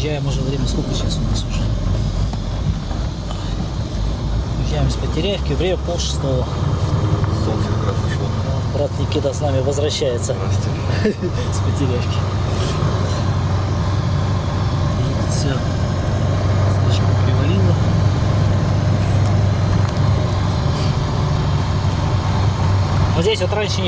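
The cab rattles and clanks over a bumpy snowy track.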